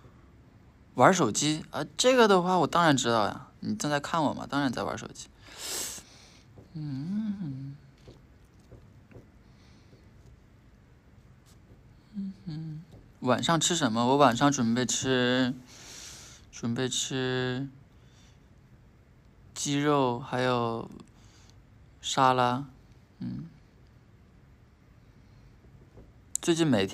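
A young man talks casually and softly, close to a phone's microphone, with pauses between phrases.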